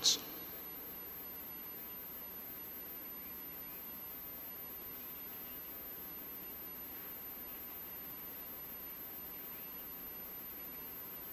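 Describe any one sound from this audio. An elderly man reads aloud calmly into a microphone.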